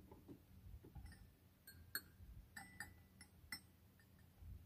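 Small metal bells chime in short high notes.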